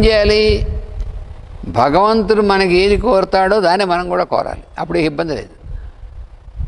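An elderly man chants slowly through a microphone.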